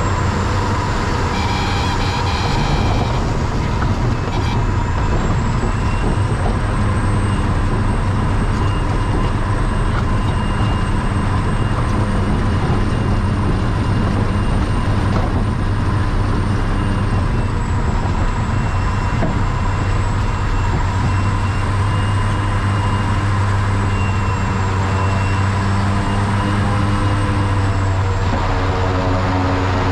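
A small plane's propeller engine drones loudly and steadily, heard from inside the cockpit.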